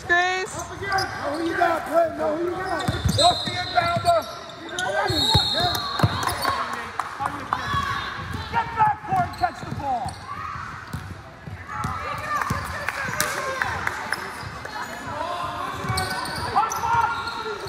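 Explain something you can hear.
Girls shout and call out on a basketball court.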